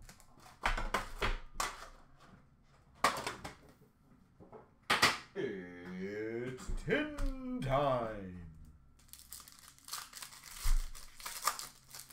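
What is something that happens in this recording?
Plastic wrappers crinkle and rustle close by as card packs are handled.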